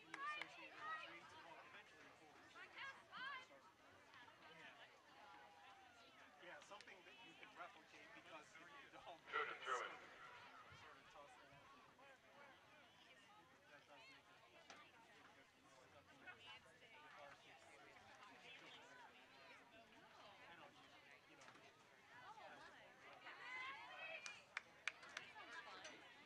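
A crowd of spectators nearby chatters and shouts outdoors.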